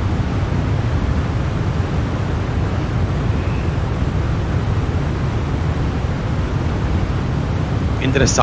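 Jet engines drone steadily with a deep, constant rumble.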